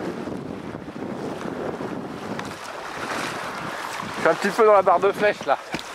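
Water rushes along a sailing boat's hull.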